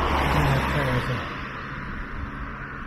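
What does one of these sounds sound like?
A car drives past on the road close by.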